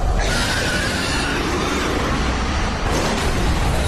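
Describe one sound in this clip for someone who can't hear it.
A monster roars loudly.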